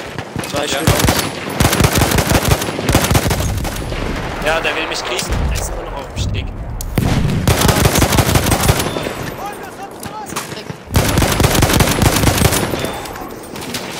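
A submachine gun fires rapid bursts close by.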